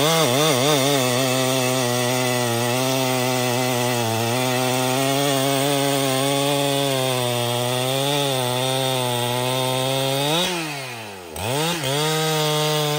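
A chainsaw engine roars loudly and cuts through wood, its pitch dipping and rising as the throttle changes.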